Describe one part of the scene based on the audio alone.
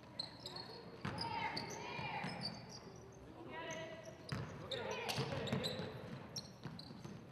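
Young women shout to each other across the court.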